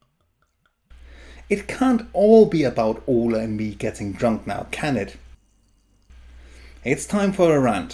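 Beer pours and fizzes into a glass.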